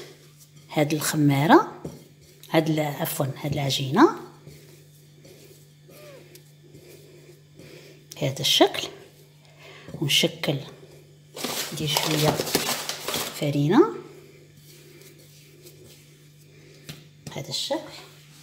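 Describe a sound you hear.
Hands squeeze and knead soft, sticky dough.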